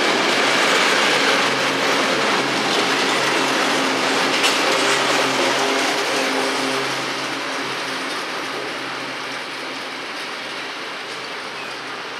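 A freight train rumbles and clatters along the tracks, slowly fading into the distance.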